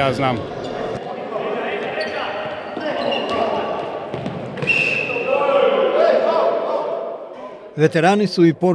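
A ball is kicked and thuds in a large echoing hall.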